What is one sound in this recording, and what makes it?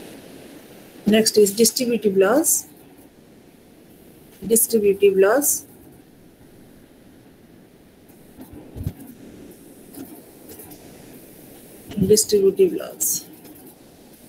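A young woman speaks calmly in short bursts over an online call.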